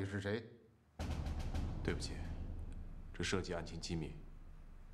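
A younger man answers calmly.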